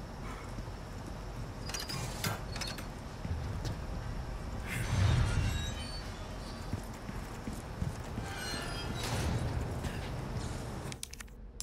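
Footsteps fall on a hard floor.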